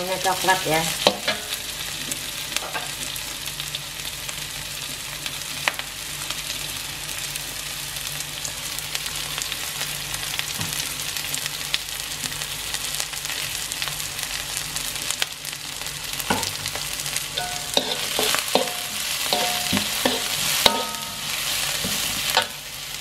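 Onions sizzle steadily in hot oil.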